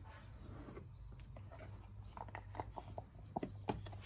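A tool scrapes and taps against a plastic cup.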